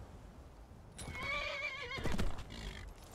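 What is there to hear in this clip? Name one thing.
A horse whinnies loudly.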